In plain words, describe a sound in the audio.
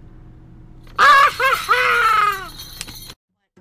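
A young man laughs loudly and mockingly.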